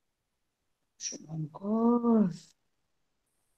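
A woman speaks briefly through an online call.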